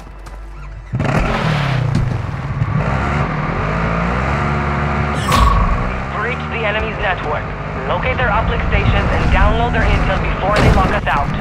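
A quad bike engine runs and revs loudly.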